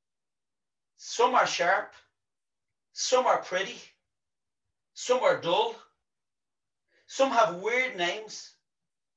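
A middle-aged man speaks calmly and clearly into a nearby microphone, in short phrases with pauses.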